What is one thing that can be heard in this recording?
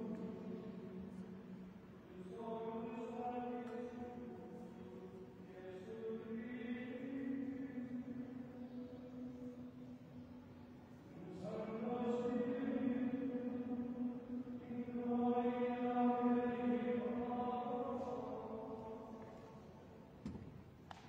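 A middle-aged man chants slowly in a large echoing hall, heard through a microphone.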